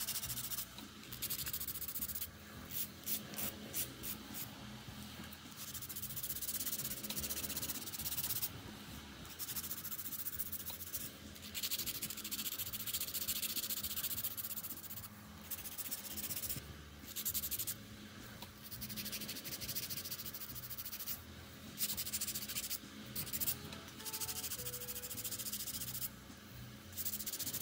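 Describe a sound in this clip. A nail file scrapes rapidly against acrylic nails.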